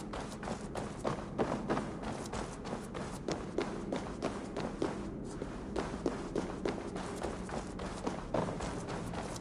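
Footsteps thud steadily on wooden floors and stairs.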